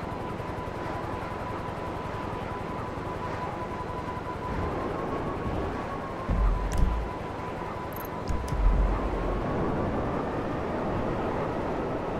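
A jet engine whines steadily.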